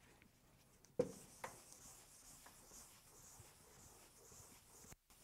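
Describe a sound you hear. An eraser rubs with a soft swishing against a blackboard.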